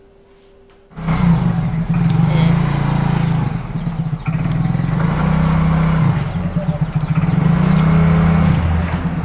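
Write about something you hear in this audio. A motor scooter engine idles and hums loudly close by.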